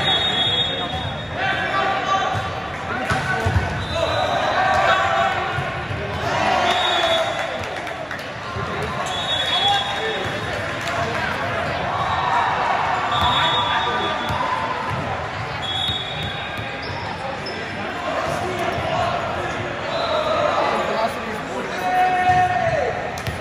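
A crowd chatters throughout a large, echoing hall.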